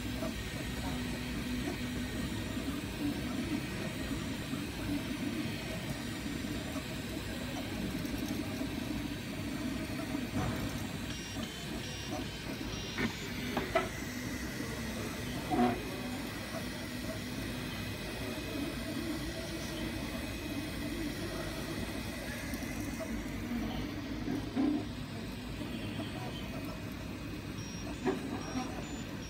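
A printer's stepper motors whir and buzz steadily, changing pitch.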